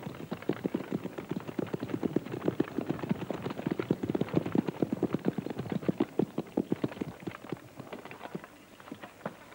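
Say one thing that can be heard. Carriage wheels rumble and crunch over gravel.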